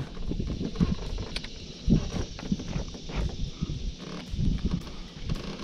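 Small waves lap against the side of a boat.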